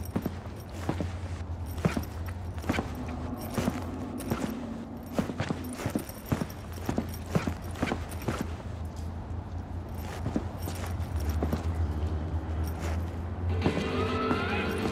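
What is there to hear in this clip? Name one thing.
Footsteps tap steadily on hard pavement.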